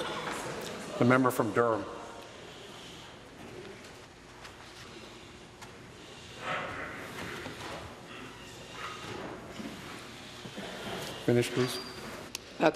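A man speaks loudly through a microphone in a large echoing hall.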